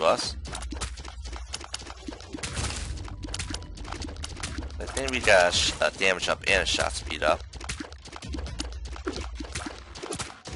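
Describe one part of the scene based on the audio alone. A game character fires rapid, wet popping shots.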